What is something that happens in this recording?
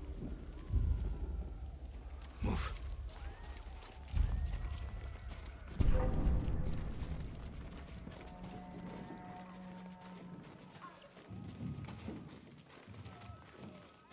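Footsteps move softly over grass and wooden boards.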